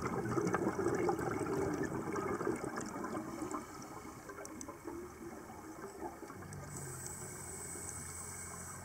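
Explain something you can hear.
Bubbles from a diver's breathing gurgle and burble underwater.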